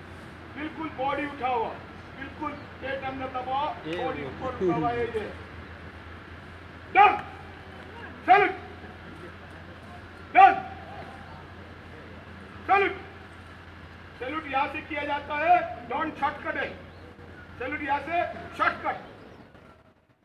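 A group of men recite in unison outdoors.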